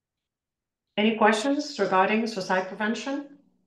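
A woman speaks calmly and close into a microphone.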